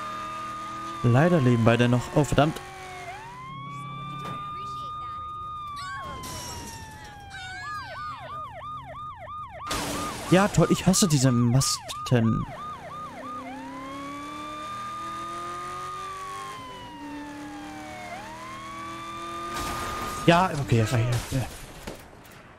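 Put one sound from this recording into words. Tyres screech during a skid.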